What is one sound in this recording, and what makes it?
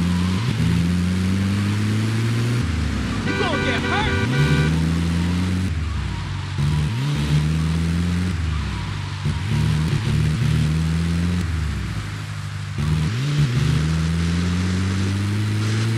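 A vehicle engine roars loudly and revs up again and again as it shifts gears.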